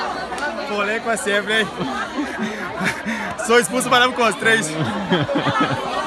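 A young man laughs close by.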